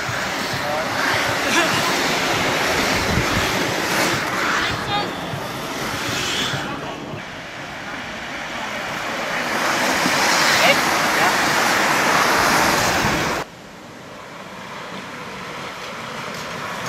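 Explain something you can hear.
Inline skate wheels roll and whir on asphalt as a pack of skaters sweeps past.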